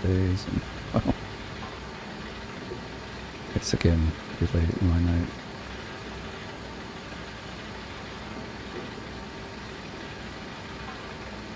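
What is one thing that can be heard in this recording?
A heavy truck engine idles with a low, steady rumble.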